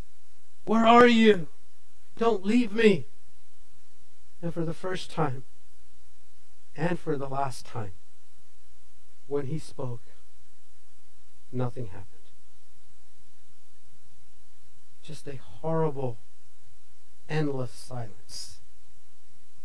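A man speaks with animation into a microphone, in short phrases with pauses.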